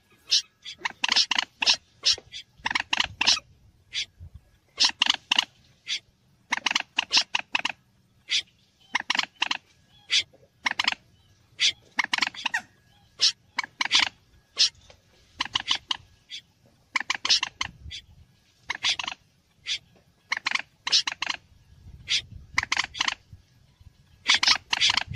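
A moorhen calls in quick, sharp bursts of clucks.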